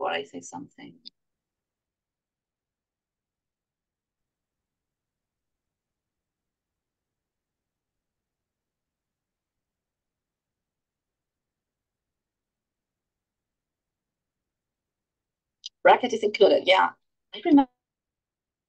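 A woman speaks calmly through an online call microphone, with long pauses.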